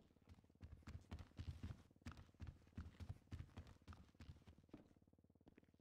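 Heavy footsteps thud quickly on a floor.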